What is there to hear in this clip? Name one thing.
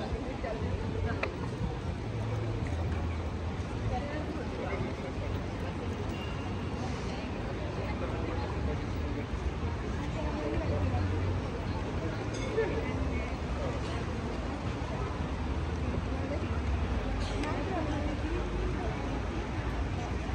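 A crowd of people chatters in the distance outdoors.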